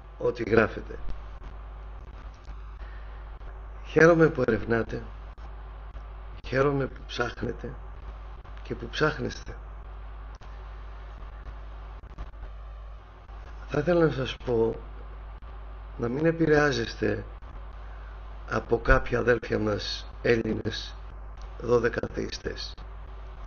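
A man speaks calmly in bursts with pauses, heard through a microphone over an online stream.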